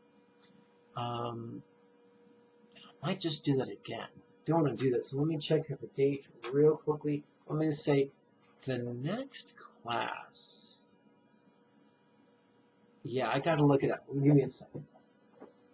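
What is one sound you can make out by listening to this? A middle-aged man speaks thoughtfully close to a microphone.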